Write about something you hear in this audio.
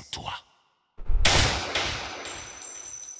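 A gunshot bangs loudly and rings out.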